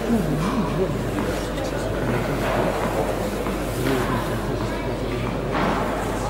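A player bounces a tennis ball on a clay court.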